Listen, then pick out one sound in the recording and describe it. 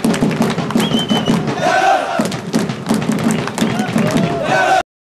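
Fans clap their hands in rhythm.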